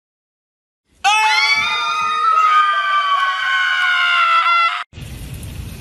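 A young woman screams loudly and shrilly.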